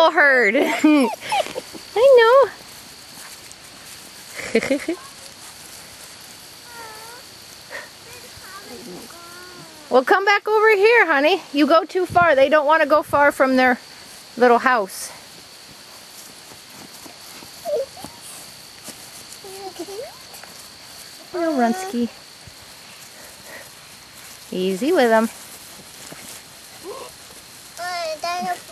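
Puppies yelp and whine in high, squeaky bursts.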